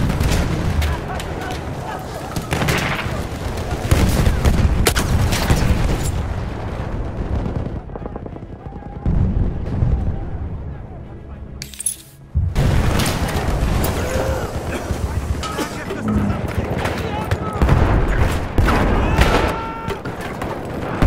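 Explosions rumble nearby.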